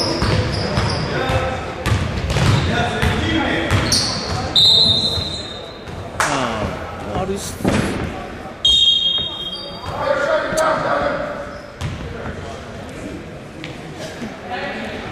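Spectators murmur and call out in a large echoing hall.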